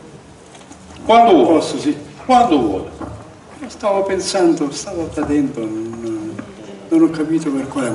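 An elderly man speaks calmly into a microphone over a loudspeaker.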